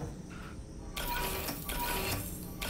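Electric sparks crackle and buzz from a machine.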